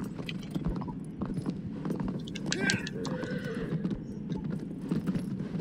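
Hooves clop steadily on stone.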